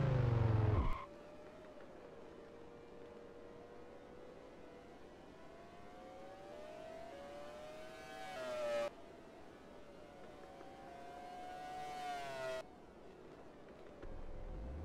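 A racing car engine idles quietly and blips its revs now and then.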